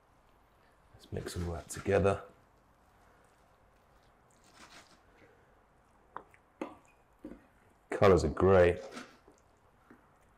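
A spatula scrapes and stirs in a pan.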